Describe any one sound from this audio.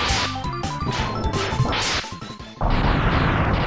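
Rapid electronic blaster shots fire in quick bursts.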